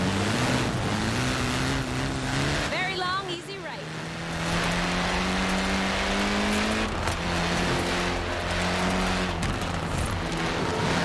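A car engine roars and revs up as it speeds along.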